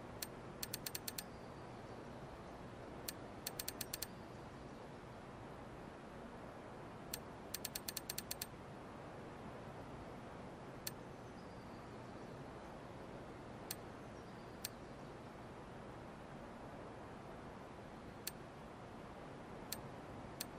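Short menu clicks tick in quick bursts as selections change.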